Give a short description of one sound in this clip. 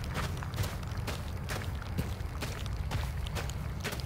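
Footsteps crunch on sand at a steady walking pace.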